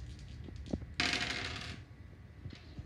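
Small dice roll and clatter on a table.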